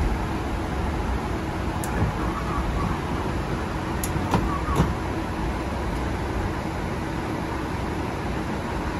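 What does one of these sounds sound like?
A steady low engine rumble hums throughout.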